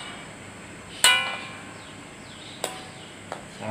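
A metal ladle clinks against a metal wok.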